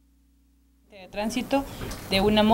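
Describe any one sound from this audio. A woman speaks into a close microphone.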